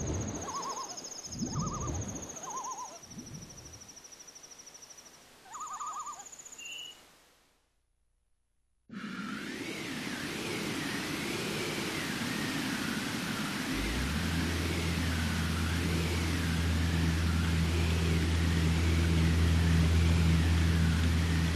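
Waves wash over the open sea.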